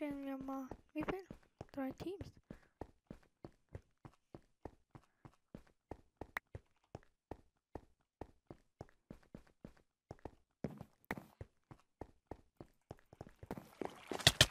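Quick footsteps tap steadily on a hard surface.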